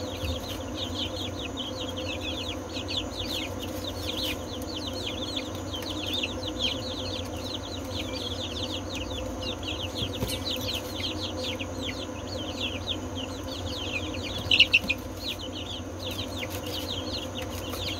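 Many chicks peep constantly and shrilly close by.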